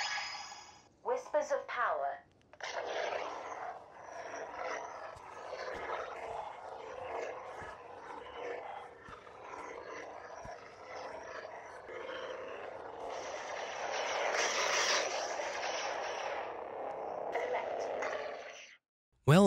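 A toy lightsaber swooshes and crackles as it is swung.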